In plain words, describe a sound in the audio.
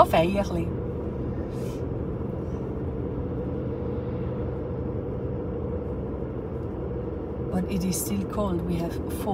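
A car engine hums steadily as a vehicle drives along a road.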